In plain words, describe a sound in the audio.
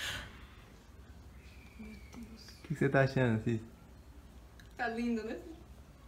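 An elderly woman laughs softly behind her hand.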